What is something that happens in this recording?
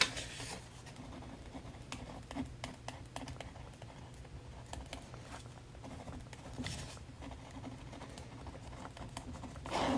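A pen scratches softly on a surface.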